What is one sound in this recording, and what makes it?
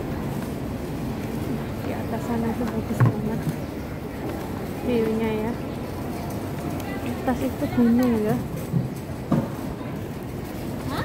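A quiet murmur of a busy street fills the air.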